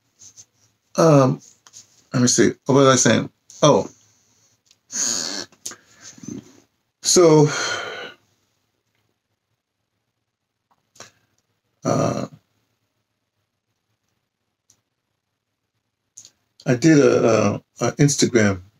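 A middle-aged man speaks calmly into a microphone close by, with pauses.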